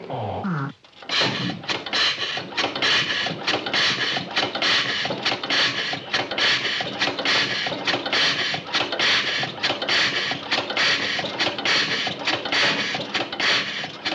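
A steam engine hisses and chugs rapidly.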